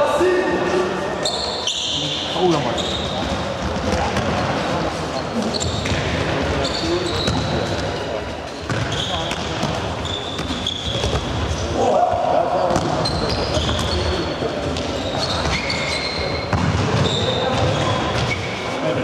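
Young players shout to each other, echoing in a large hall.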